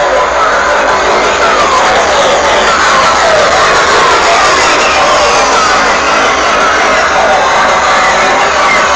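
Loud music plays through big loudspeakers outdoors.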